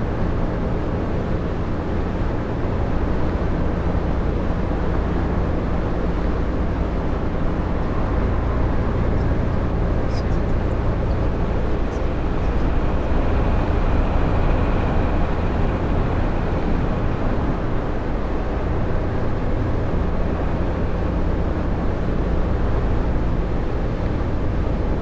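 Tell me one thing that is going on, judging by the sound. A bus engine hums steadily from inside the cab.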